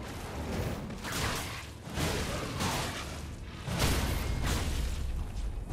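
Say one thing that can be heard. A sword swings and whooshes through the air.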